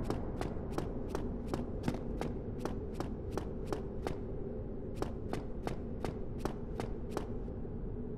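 Quick footsteps run on stone in a steady rhythm.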